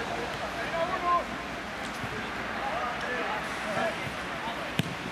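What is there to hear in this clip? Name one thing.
Men shout to each other outdoors.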